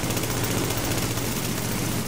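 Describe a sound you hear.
Rapid gunshots fire in bursts.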